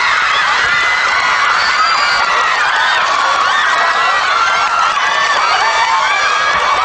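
A large crowd of young women screams excitedly in an echoing hall.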